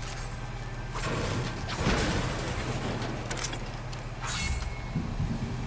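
A pickaxe smashes against wooden objects.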